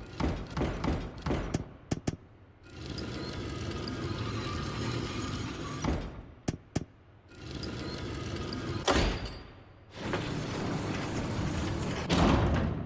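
Heavy stained glass panels grind and rumble as they rotate.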